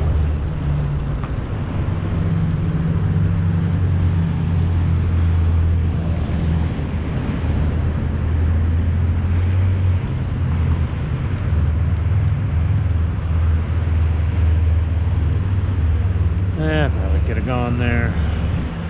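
Cars drive past on a city street with a steady low rumble.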